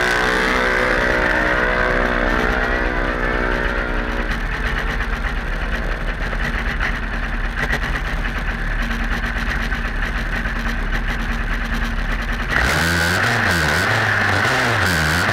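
Racing car engines rumble and rev loudly down a track, outdoors.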